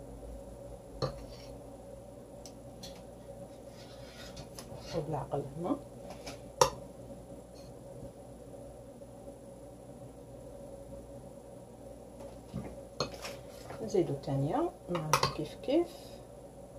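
A metal fork taps and scrapes against a bowl.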